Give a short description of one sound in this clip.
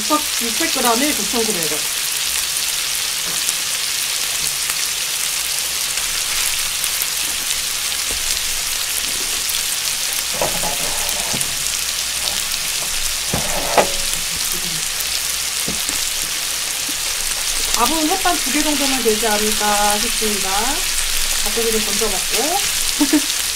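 Meat sizzles loudly on a hot grill.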